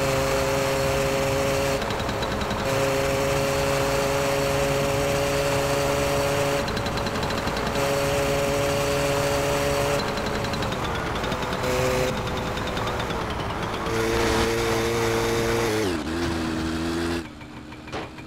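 A small motorbike engine drones steadily, then drops in pitch as it slows.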